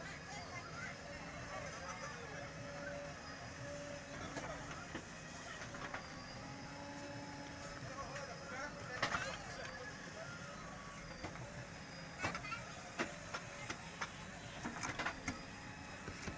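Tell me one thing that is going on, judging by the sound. A metal bucket scrapes and thuds into soil and rocks.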